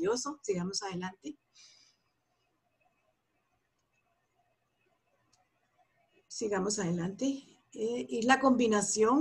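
A woman speaks calmly through an online call, pausing between phrases.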